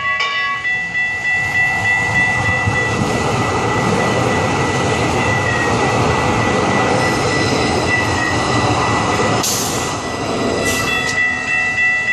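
A light rail train rolls past close by with a rushing rumble.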